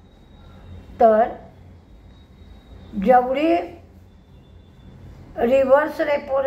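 An elderly woman speaks calmly and close by, in short phrases with pauses.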